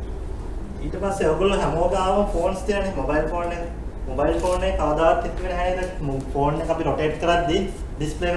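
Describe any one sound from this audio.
A man speaks calmly to an audience in a large echoing hall.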